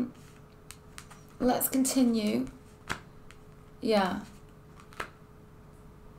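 A playing card is laid down on a cloth-covered table with a soft tap.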